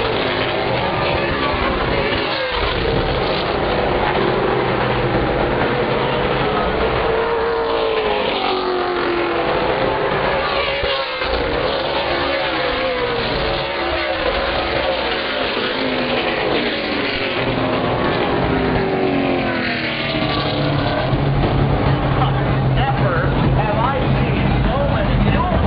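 Race car engines roar and whine as cars speed around the track.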